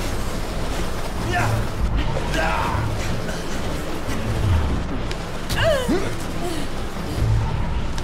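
Men grunt and shout while fighting close by.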